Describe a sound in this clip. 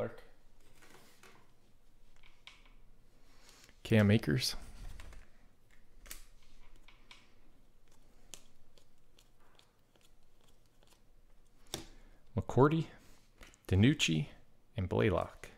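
Trading cards rustle and slide softly against each other in hands.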